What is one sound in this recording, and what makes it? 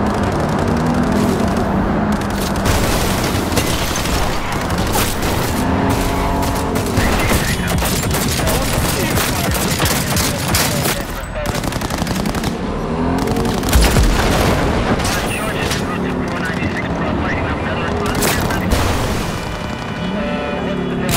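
A car engine roars steadily at speed.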